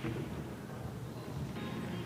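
Pool balls clatter together as they are racked.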